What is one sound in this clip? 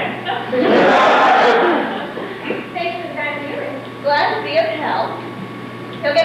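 A woman speaks with animation, heard from a distance in a large room.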